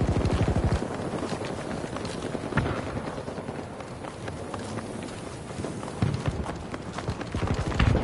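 Footsteps run quickly over a hard surface.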